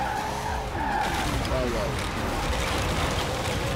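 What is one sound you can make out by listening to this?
Objects crash and scatter as a game car hits them.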